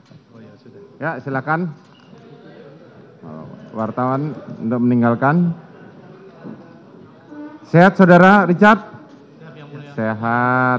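Men call out and talk in a crowded hall.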